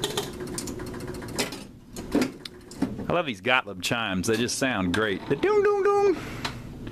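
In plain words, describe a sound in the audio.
A pinball machine clicks and clacks as the ball strikes its bumpers.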